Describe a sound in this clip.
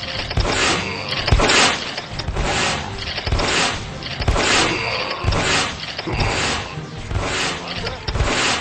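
Game turrets fire rapid laser shots.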